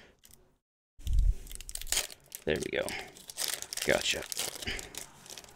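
A foil card pack crinkles and tears as hands rip it open.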